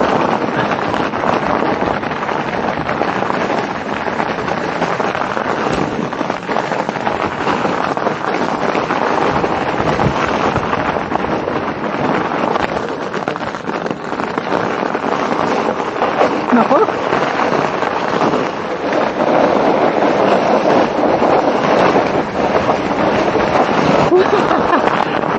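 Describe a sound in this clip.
Bicycle tyres crunch and rumble steadily over packed snow.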